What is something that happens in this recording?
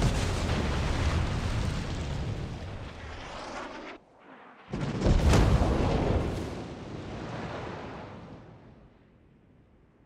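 Shells explode with deep blasts that roll away.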